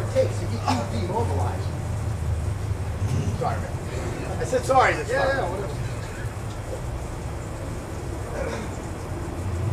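A young man talks loudly outdoors.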